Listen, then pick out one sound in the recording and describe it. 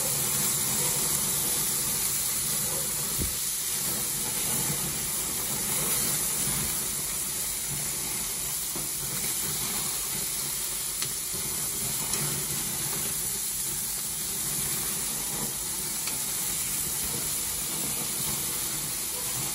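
Meat sizzles steadily on a hot grill.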